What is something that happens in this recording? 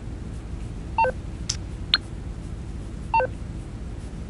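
A phone gives a few short electronic beeps.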